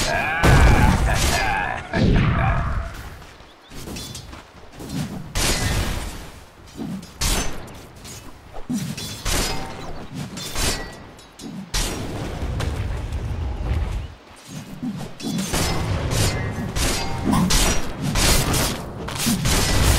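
Weapons strike and clash in a fight.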